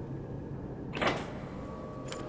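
A button clicks on a control panel.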